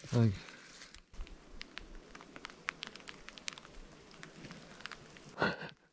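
A plastic tarp rustles and crinkles.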